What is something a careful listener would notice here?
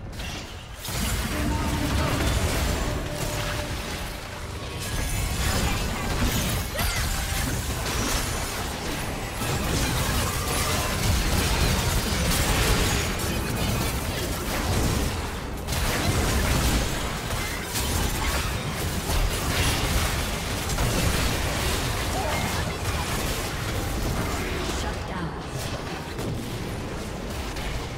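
Magic blasts and strikes clash rapidly in a fast game battle.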